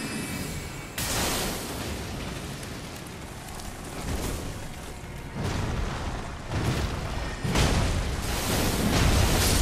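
A heavy hammer swings and smashes with deep booming thuds.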